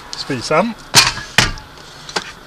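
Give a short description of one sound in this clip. A portable stove knocks down onto a wooden board.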